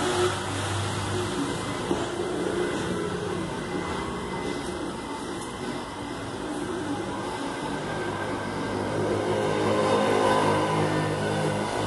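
A plastic tool scrapes lightly against vinyl film.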